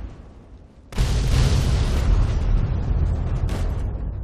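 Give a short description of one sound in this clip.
A loud explosion booms close by and roars on.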